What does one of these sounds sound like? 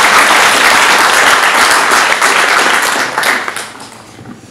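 A small crowd applauds in a room.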